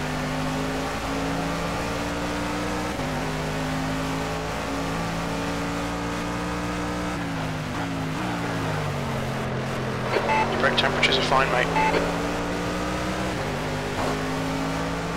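A race car engine roars steadily, its pitch climbing through each gear and dropping as it slows.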